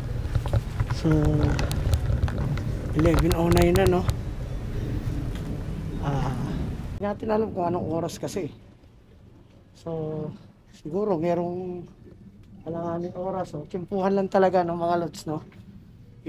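A man speaks quietly close to a microphone.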